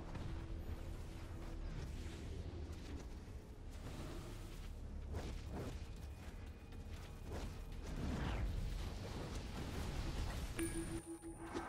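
Fighters clash with booming blows and energy blasts.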